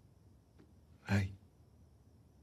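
A man says a few words quietly, close by.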